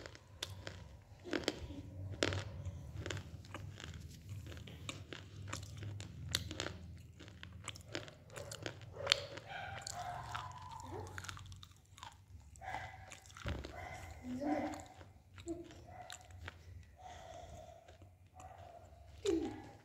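Wet mouth sounds click and smack up close.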